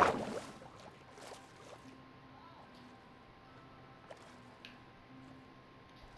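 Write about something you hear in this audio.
A low, muffled underwater ambience hums steadily.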